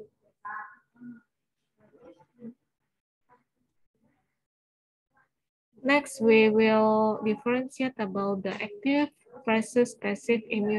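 A woman lectures calmly through an online call microphone.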